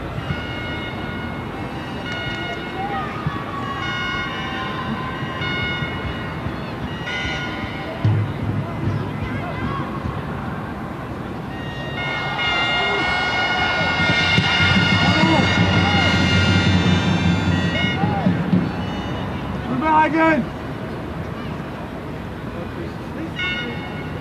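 A large crowd murmurs steadily in a stadium, outdoors.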